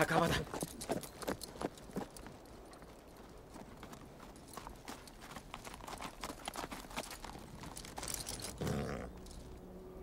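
Horses' hooves thud and crunch through dry leaves.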